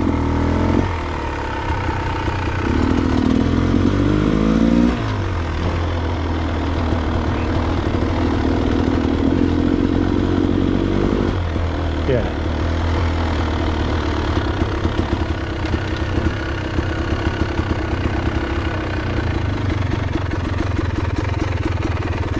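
A motorbike engine revs and burbles up close.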